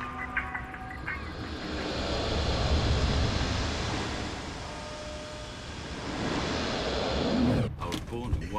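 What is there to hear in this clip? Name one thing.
Flames roar loudly.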